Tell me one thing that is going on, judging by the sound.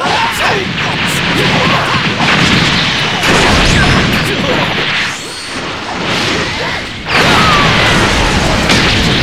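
Blows thud and crash as fighters clash.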